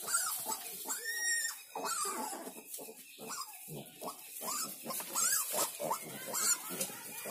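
Piglets squeal and grunt close by.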